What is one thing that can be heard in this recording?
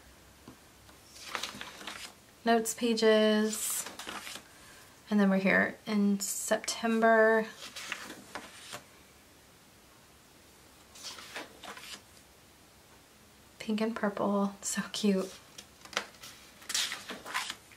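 Paper pages rustle and flip as they are turned.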